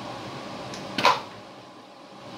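A plastic tray knocks and rattles as it is pulled out.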